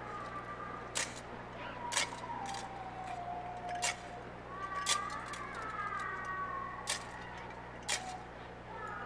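A metal censer clinks on its chains.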